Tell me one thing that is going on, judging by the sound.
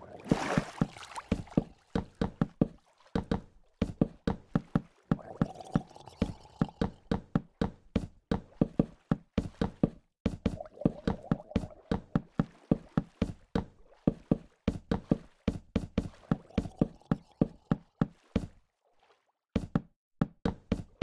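Wooden blocks knock into place in quick succession.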